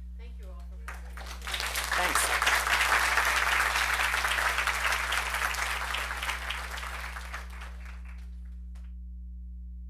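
An audience applauds, then the clapping fades.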